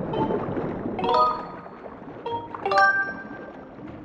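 A bright chime rings out twice.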